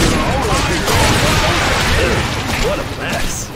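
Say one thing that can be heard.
Magic blasts crackle and burst loudly.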